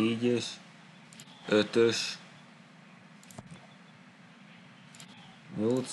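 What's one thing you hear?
A young man speaks in short bursts, close to a microphone.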